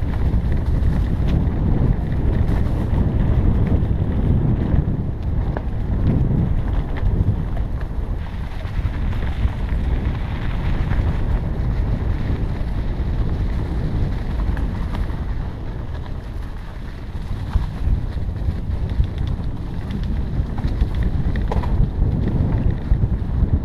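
A motorbike engine rumbles steadily.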